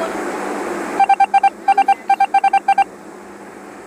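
Short electronic beeps tick rapidly one after another.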